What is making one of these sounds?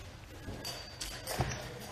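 Footsteps thud on a wooden floor close by.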